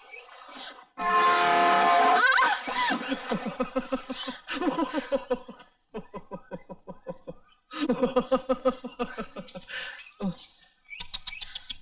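A man sings a melodic song.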